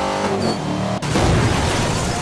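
A car crashes with a loud metallic smash.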